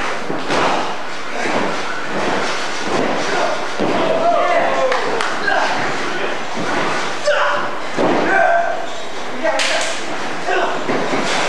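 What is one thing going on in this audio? Blows land on a body with sharp slaps and thuds.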